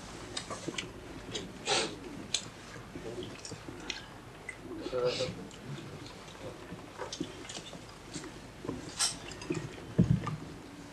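A crowd of men murmur and talk nearby.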